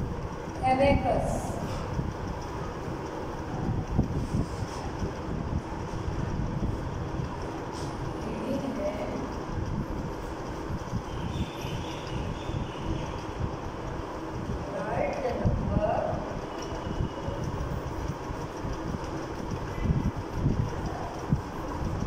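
A woman speaks calmly, as if teaching.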